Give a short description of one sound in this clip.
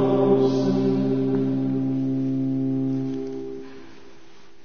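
A choir of men sings a long held note in a large echoing hall, then falls silent.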